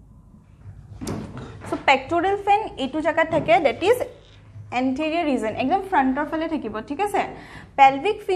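A young woman speaks clearly and steadily, explaining.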